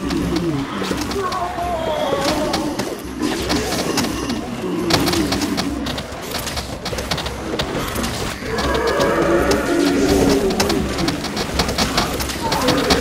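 Cartoon game sound effects pop and splat rapidly.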